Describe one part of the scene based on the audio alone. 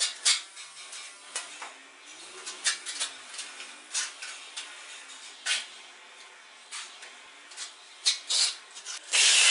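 A trowel clinks and taps against a bucket.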